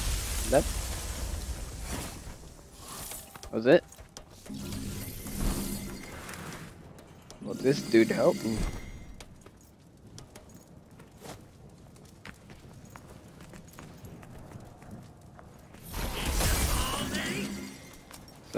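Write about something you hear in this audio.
Blades slash and strike with heavy impacts in a fight.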